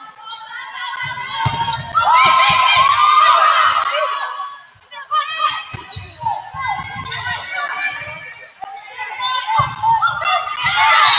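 A volleyball is struck with sharp slaps and thumps.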